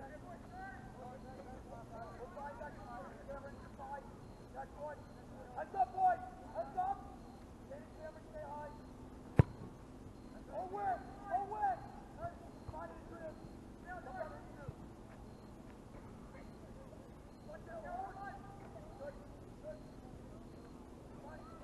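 Young men shout to each other across an open field outdoors, some distance away.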